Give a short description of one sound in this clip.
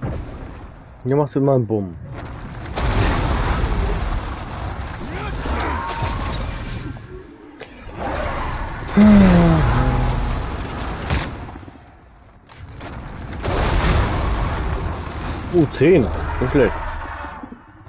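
A young man talks into a close microphone now and then.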